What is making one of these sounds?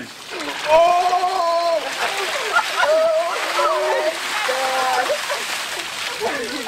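Water splashes from buckets onto a person and the pavement.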